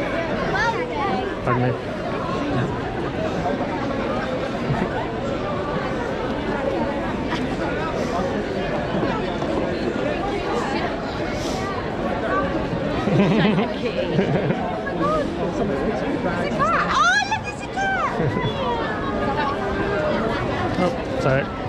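A crowd of people chatters all around outdoors.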